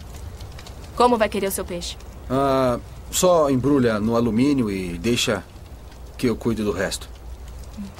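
A young man speaks quietly and calmly nearby.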